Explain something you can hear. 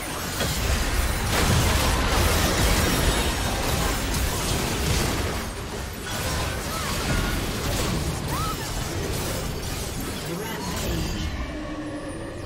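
Spell effects and magic blasts crackle and boom in a fierce battle.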